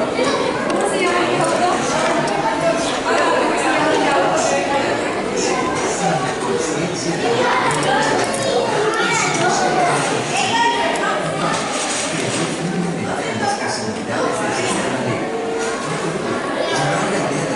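A crowd of adults chatters and talks nearby in a busy indoor space.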